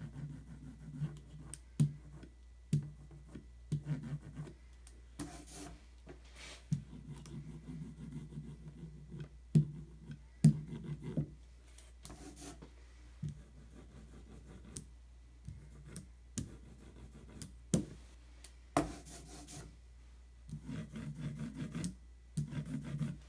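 A rubber roller rolls with a soft, sticky hiss across an inked surface.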